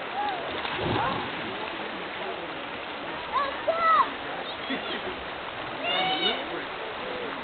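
Children shout and call out playfully outdoors.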